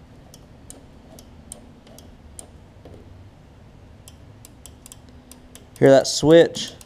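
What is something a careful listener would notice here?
Small metal engine parts click and tick as they are handled.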